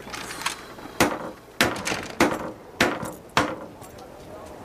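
A hammer strikes wood in sharp, repeated blows.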